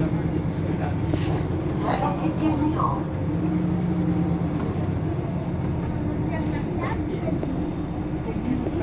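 A bus engine rumbles low and steady nearby.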